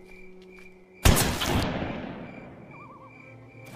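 A shotgun fires with a loud blast that echoes away.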